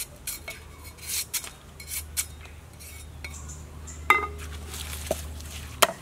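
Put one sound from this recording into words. A knife scrapes and peels a plant stalk.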